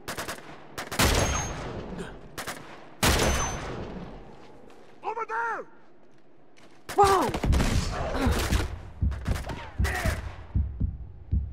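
Rifle shots crack loudly, each trailing off in a long echo.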